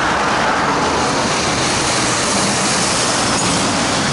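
A heavy truck engine drones as it drives past.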